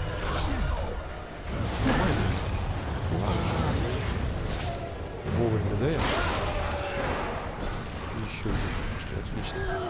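A monster growls and roars loudly.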